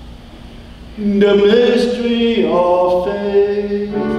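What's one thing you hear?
A young man chants into a microphone.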